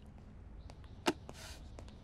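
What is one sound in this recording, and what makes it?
A ceramic mug knocks down onto a table.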